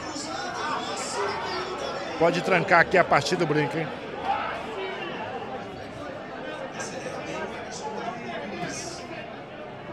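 A crowd of men chatters and murmurs in a busy room.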